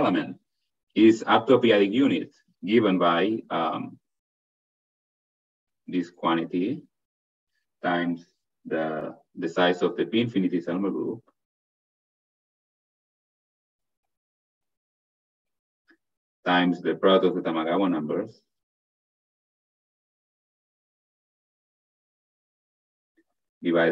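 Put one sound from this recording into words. A man speaks calmly through a microphone on an online call, pausing often.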